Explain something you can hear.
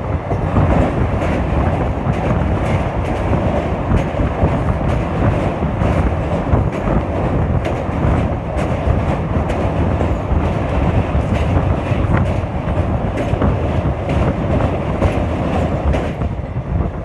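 A train rumbles and rattles across a steel truss bridge.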